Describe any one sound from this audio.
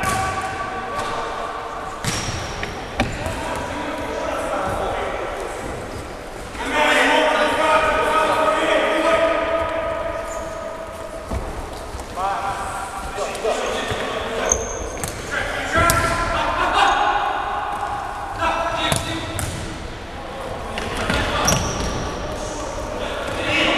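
Men shout to each other across an echoing hall.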